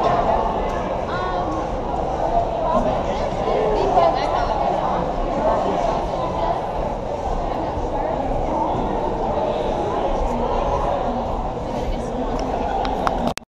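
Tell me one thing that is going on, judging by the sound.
Many footsteps shuffle and tap on a wooden floor.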